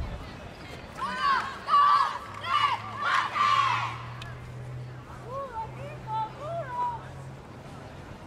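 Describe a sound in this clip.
Young women cheer and shout excitedly outdoors.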